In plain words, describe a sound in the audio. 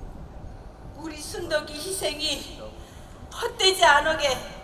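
A woman cries out in a wailing voice through a microphone, echoing in a large hall.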